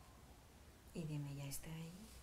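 A woman speaks calmly and softly nearby.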